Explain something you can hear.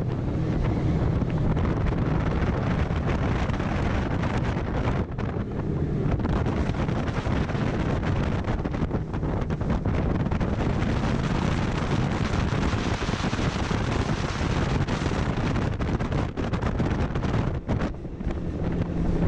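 Spray and waves splash against a speeding boat's hull.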